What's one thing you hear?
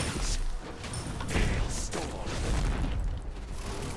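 Game spells and hits burst and clash.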